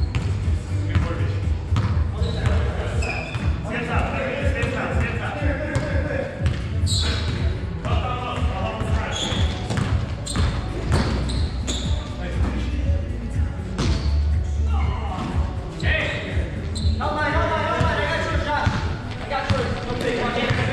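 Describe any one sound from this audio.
Young men shout and call out to each other across an echoing gym.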